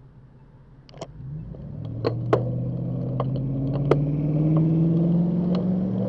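A bicycle sets off and its whirring rises steadily in pitch as it speeds up.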